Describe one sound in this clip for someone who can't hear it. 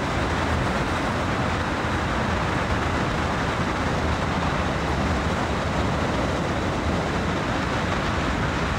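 Train wheels rattle along the rails.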